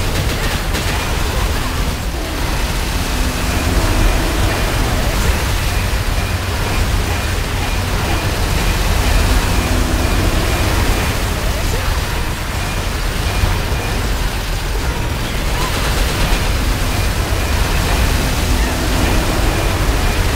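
Game spell effects blast and crackle without pause.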